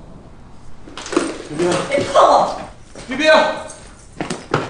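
A young woman shouts angrily.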